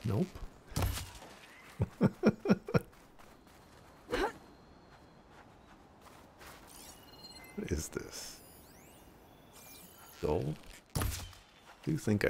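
A bowstring twangs as arrows are shot.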